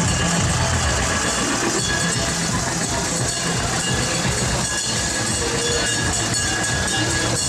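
A tractor engine rumbles close by.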